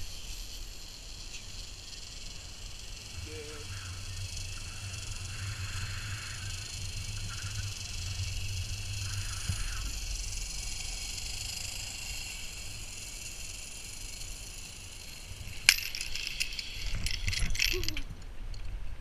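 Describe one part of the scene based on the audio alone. A zipline trolley whirs steadily along a cable.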